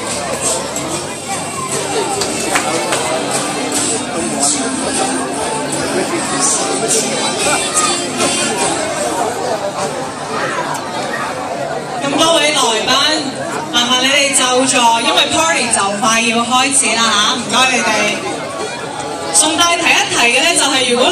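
A large crowd chatters throughout a big echoing hall.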